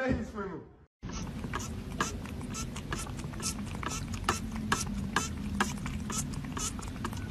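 Nail clippers click repeatedly.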